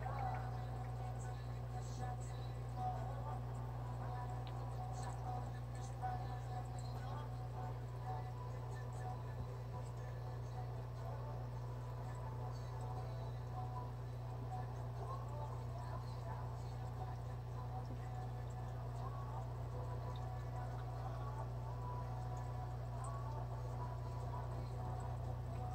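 Air bubbles gurgle and bubble steadily in an aquarium.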